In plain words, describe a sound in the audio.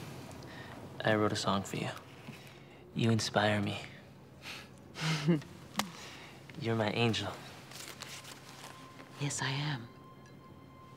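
A middle-aged woman answers calmly and warmly.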